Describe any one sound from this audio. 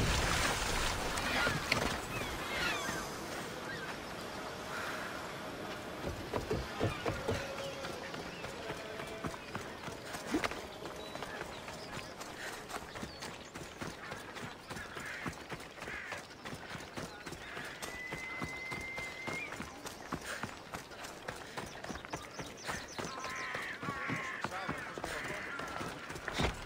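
Footsteps patter quickly on dirt and wooden steps.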